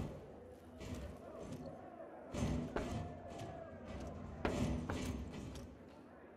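Heavy footsteps clank on a metal grating.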